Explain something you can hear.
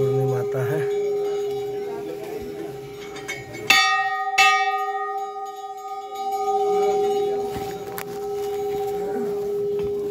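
Large metal bells clang loudly and ring on with a long, humming tone.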